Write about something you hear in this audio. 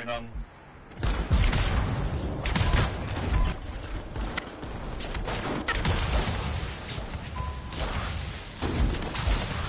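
Rapid gunfire and energy blasts crackle in a noisy battle.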